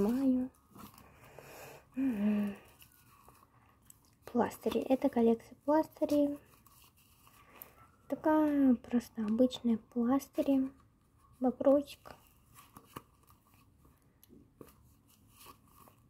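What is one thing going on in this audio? Paper cards rustle softly as they are shuffled and sorted by hand.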